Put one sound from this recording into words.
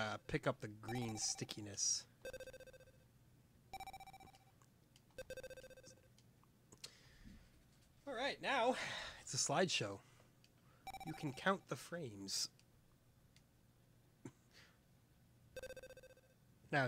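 Short electronic beeps ring out as a ball bounces in an arcade game.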